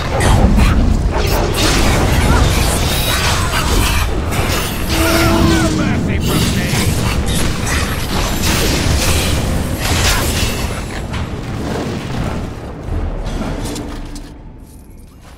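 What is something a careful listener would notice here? Swords clash and clang in a fierce fight.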